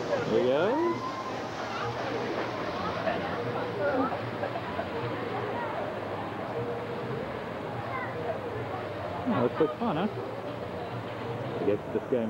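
Water rushes and splashes down a slide.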